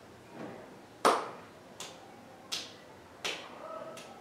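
A man claps his hands softly in a slow beat.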